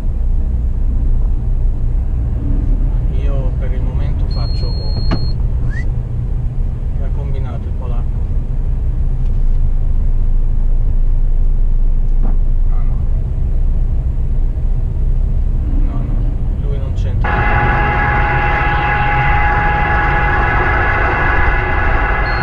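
A truck's diesel engine rumbles low and steady from inside the cab.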